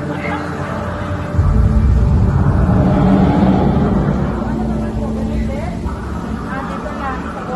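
A crowd of adults murmurs and chatters nearby.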